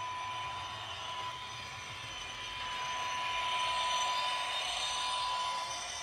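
A small electric model train whirs along its track, growing louder as it passes close by.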